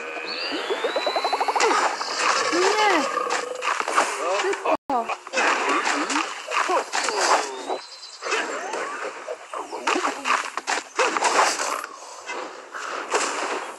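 Cartoonish game sound effects chirp, whoosh and pop.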